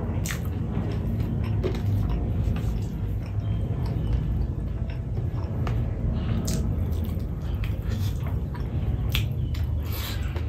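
Fingers squish and mix rice on a plate.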